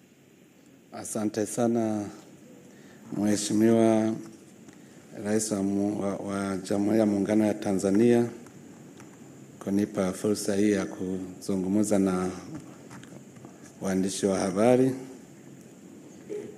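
A man speaks calmly into a microphone, heard through loudspeakers in a large tented space.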